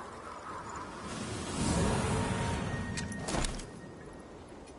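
A magical whoosh swells and bursts with a sharp crack.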